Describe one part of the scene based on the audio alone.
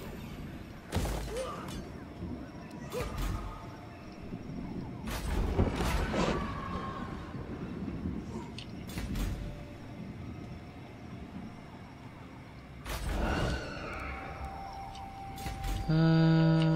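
Short game interface clicks sound as menus open and close.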